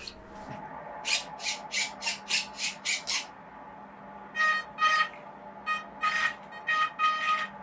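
A toy car plays electronic sound effects in short, repeated bursts.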